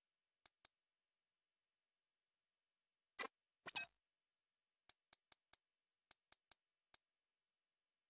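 Short soft clicks tick one after another as a game menu is scrolled.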